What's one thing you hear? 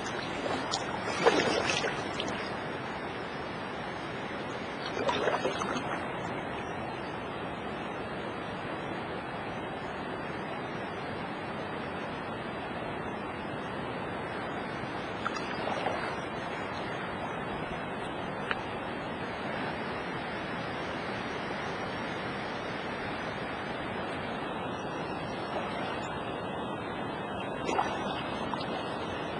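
Water laps and ripples steadily against a boat.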